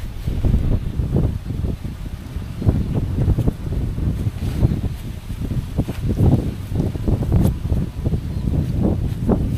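A nylon bedroll rustles as a man rolls it up.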